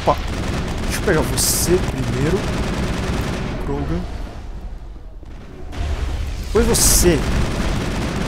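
An energy blast bursts with a loud whoosh.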